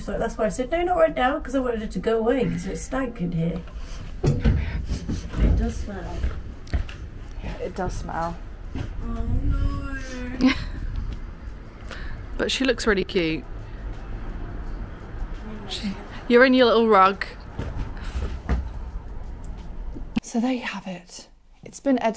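A young woman talks close to the microphone in a casual, animated way.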